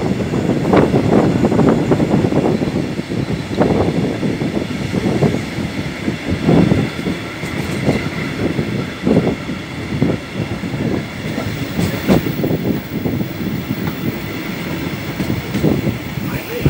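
Wind buffets loudly past an open window.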